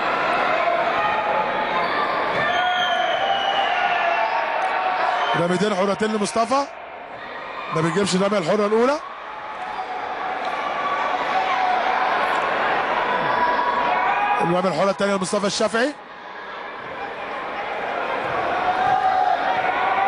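A crowd cheers and chants loudly in a large echoing hall.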